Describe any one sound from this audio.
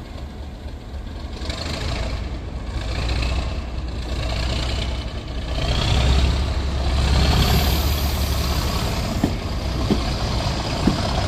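A diesel train engine rumbles and roars as the train pulls away.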